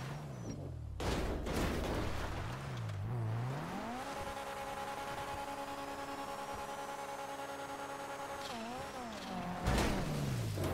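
A car thuds and crashes over rough ground.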